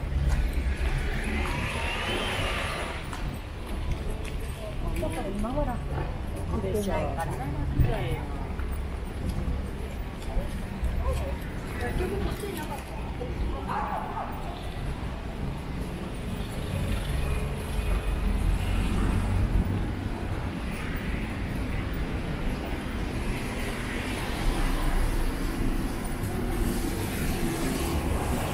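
Traffic rumbles steadily along a busy city street outdoors.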